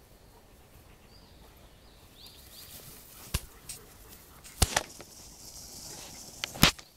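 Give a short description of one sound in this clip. Two dogs run and scamper through grass.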